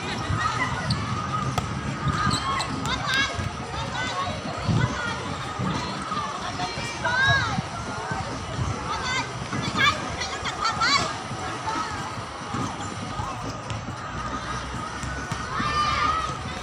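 Young women shout and call out to each other outdoors.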